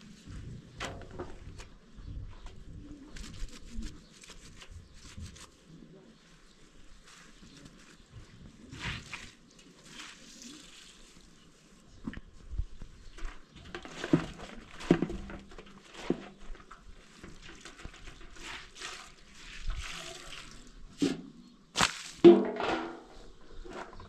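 A woman washes clothes by hand in a basin of water, splashing and sloshing.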